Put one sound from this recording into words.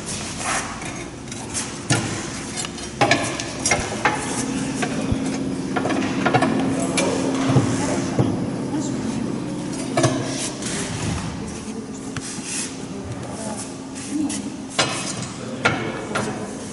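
Metal tools clink and knock against metal.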